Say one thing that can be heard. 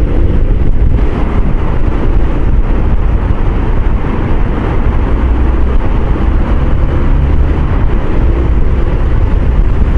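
Traffic roars and echoes inside a tunnel.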